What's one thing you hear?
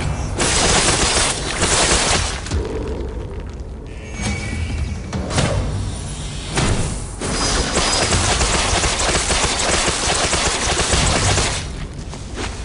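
Crackling energy blasts roar loudly in bursts.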